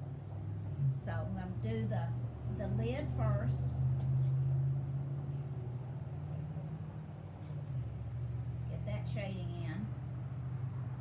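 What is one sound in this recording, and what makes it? An elderly woman talks calmly close by.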